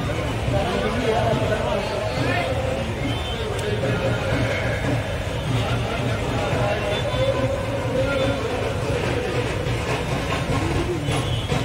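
A crowd of men talks and shouts at once, close by.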